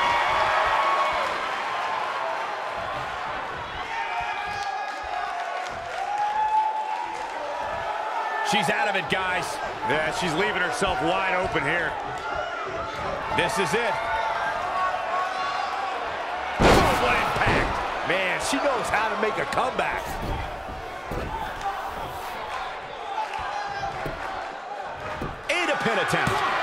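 A large crowd cheers and murmurs throughout in a big echoing arena.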